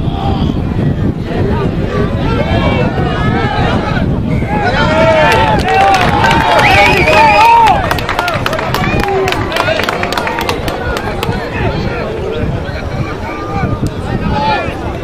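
Spectators cheer and call out in the distance.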